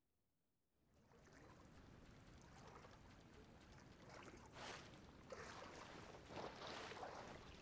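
Water splashes as a swimmer strokes.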